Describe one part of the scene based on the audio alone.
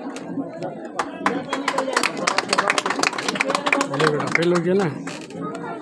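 Several people clap their hands.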